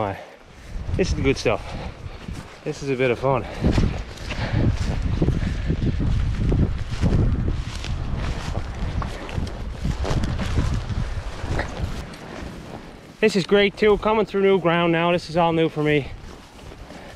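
Wind gusts roughly against a microphone outdoors.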